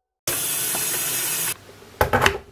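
Water runs from a tap into a kettle with a steady hiss.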